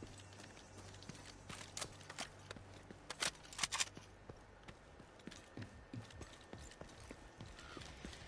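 Gunshots crack in bursts nearby.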